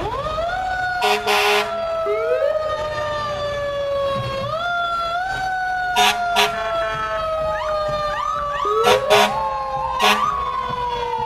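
Air horns blast in short loud bursts.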